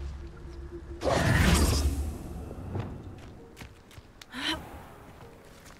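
Footsteps rustle through dry brush and grass.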